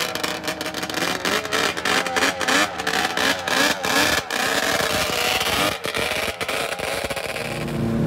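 A snowmobile engine revs up and down in bursts.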